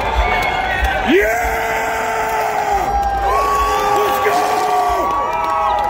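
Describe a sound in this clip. A crowd cheers and shouts close by.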